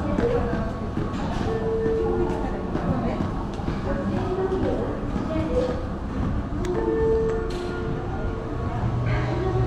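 Footsteps clack on a hard floor in an echoing hall.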